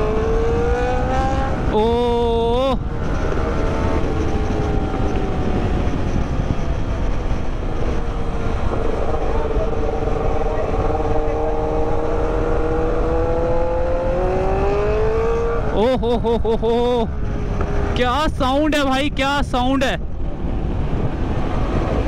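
A motorcycle engine hums steadily up close as the bike rides along.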